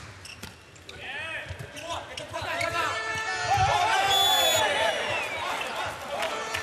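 A crowd roars loudly after a point.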